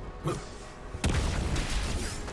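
A gun fires in short bursts.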